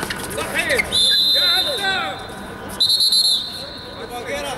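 A referee's whistle blows sharply twice.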